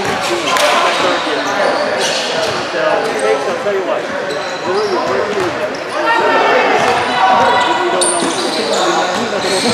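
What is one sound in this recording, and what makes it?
A basketball bounces on a court.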